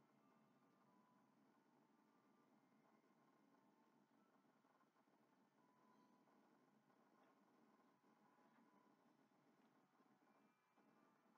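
Video game music plays quietly from a television speaker.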